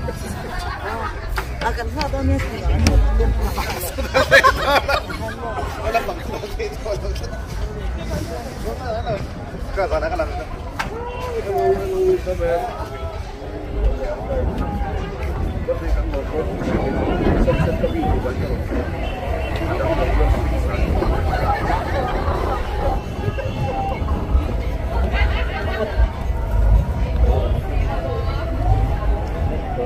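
Young women talk nearby outdoors.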